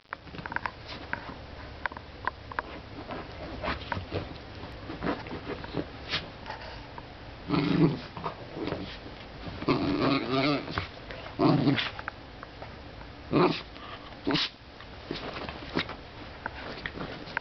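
A small dog rolls and scrabbles on a soft cushion, rustling the fabric.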